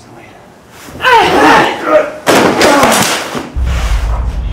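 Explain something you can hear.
A man cries out loudly.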